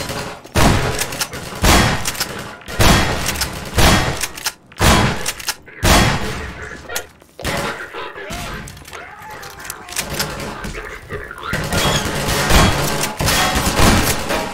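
A shotgun fires loud blasts that echo outdoors.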